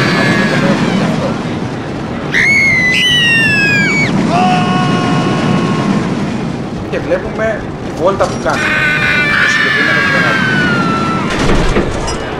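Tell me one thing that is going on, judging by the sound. A roller coaster rumbles and clatters along its track.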